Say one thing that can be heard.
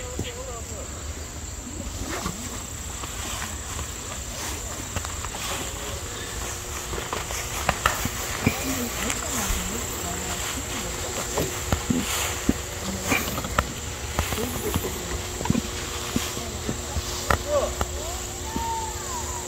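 Wind blows outdoors, rustling leaves in the trees.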